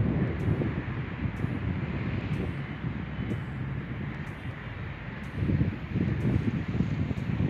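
Strong wind gusts and buffets outdoors.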